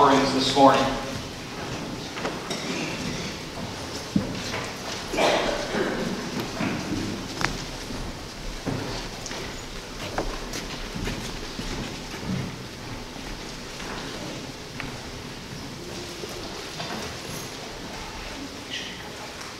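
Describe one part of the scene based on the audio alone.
Several adults chat quietly in the background.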